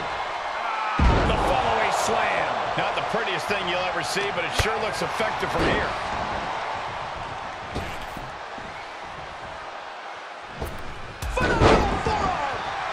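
A body thuds onto a wrestling ring mat.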